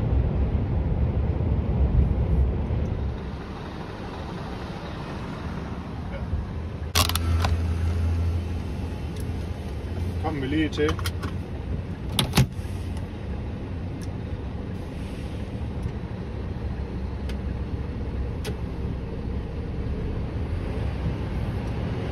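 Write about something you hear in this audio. A car drives along a road with a steady low rumble of tyres and wind.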